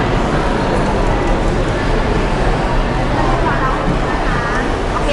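A crowd chatters and murmurs in a busy room.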